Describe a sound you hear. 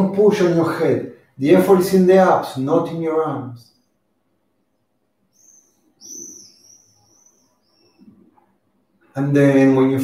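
A man speaks calmly and clearly, close to the microphone, with pauses.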